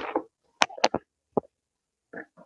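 A plastic pot knocks and scrapes as it is handled.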